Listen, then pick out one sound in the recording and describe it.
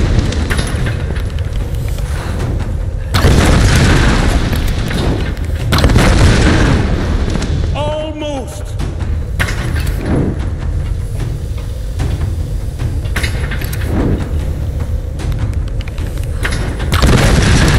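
A bowstring twangs as arrows are shot.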